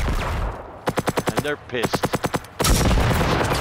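A heavy gun fires a short burst of shots.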